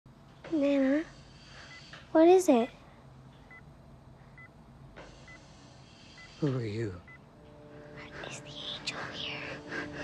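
A young girl speaks softly nearby.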